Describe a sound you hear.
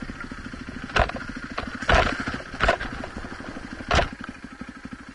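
A dirt bike knocks and thumps over rough ground.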